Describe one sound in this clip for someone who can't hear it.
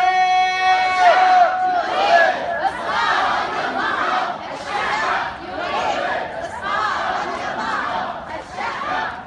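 A crowd of women chants in rhythmic bursts outdoors.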